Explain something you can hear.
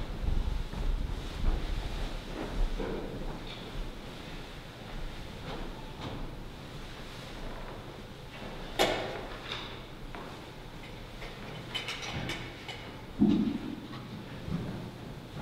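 A man murmurs a prayer quietly in an echoing hall.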